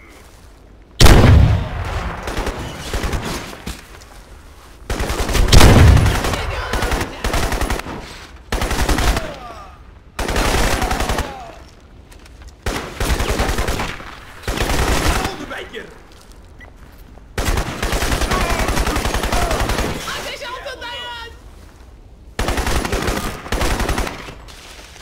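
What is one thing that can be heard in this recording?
Rapid gunfire bursts ring out in short volleys.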